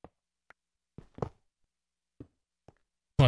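A stone block cracks and breaks apart.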